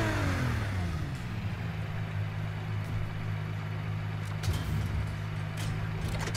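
A sports car engine idles with a steady low rumble.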